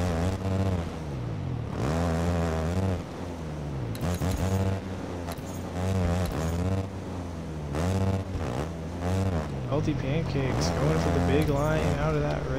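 A motorbike engine revs up and down loudly.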